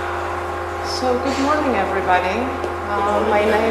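A woman speaks calmly to a room, heard through a microphone.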